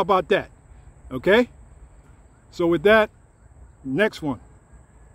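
A man speaks close up in short, animated bursts.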